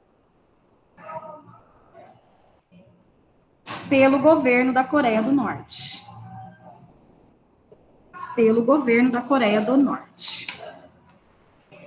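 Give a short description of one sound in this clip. A woman speaks through an online call, in short phrases with pauses.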